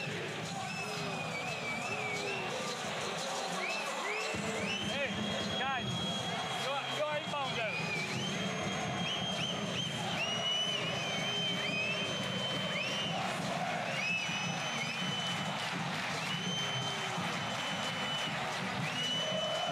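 A large crowd cheers and claps in a big echoing arena.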